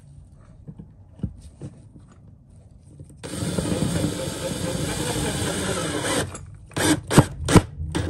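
A plastic plug scrapes and clicks into a socket.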